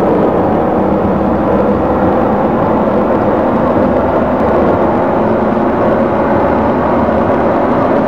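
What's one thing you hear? A train rumbles steadily along its tracks through a tunnel.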